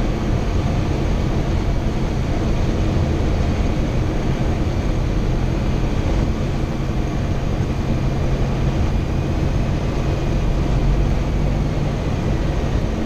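A small plane's propeller engine drones loudly and steadily inside the cabin.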